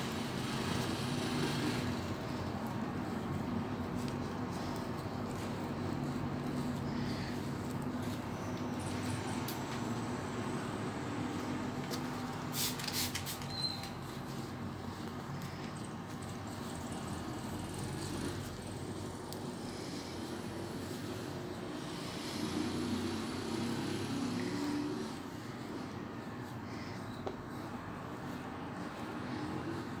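Gloved fingers rub cotton softly against skin.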